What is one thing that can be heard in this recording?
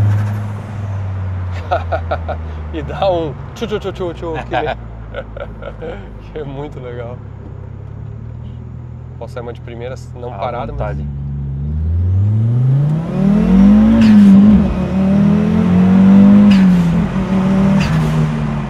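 A car engine hums steadily, then revs up loudly and accelerates.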